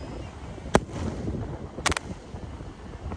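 Fireworks pop and crackle overhead.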